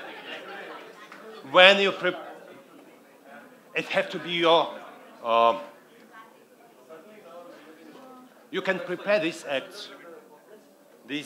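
A middle-aged man speaks with animation through a headset microphone, heard over loudspeakers in an echoing hall.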